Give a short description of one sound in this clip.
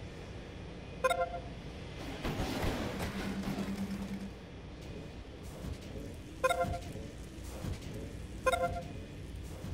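Short electronic chimes ring out a few times.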